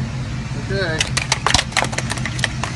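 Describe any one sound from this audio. A card slides into a machine's slot with clicks.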